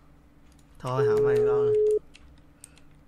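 A phone line rings with a steady tone.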